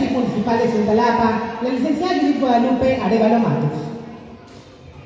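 A man announces loudly through a loudspeaker in a large room.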